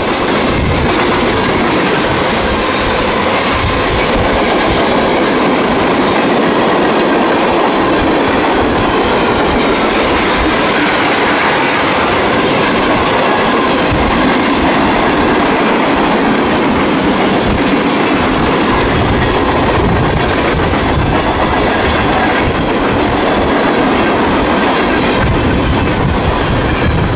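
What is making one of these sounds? A long freight train rumbles and clatters past close by.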